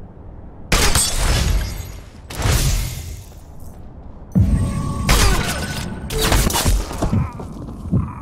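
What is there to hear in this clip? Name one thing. Loud rifle shots fire in quick bursts, each ringing out briefly.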